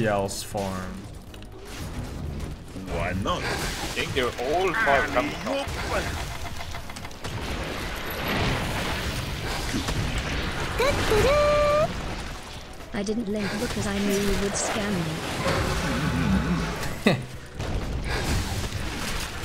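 Game battle effects crackle and whoosh throughout.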